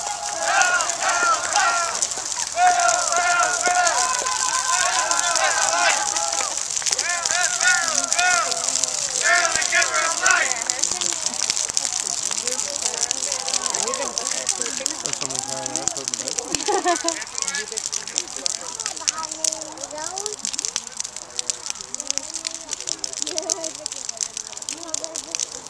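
A bonfire crackles and roars.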